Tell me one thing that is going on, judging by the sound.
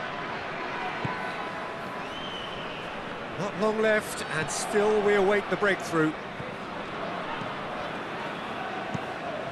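A large stadium crowd murmurs and hums steadily.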